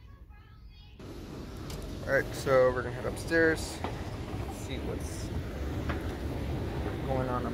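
An escalator rumbles and hums steadily underfoot.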